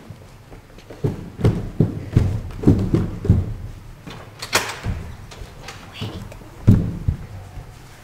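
Footsteps thump quickly on a hard floor.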